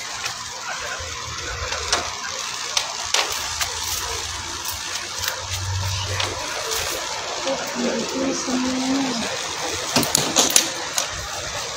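A plastic hanger clicks and knocks against a wall hook.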